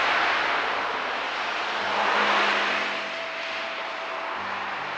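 A van drives past on a road.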